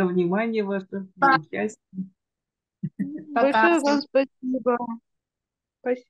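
A woman speaks cheerfully over an online call.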